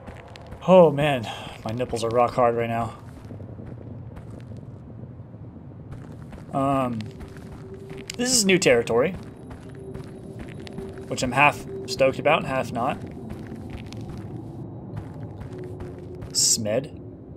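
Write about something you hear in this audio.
A young man talks animatedly into a close microphone, in short bursts.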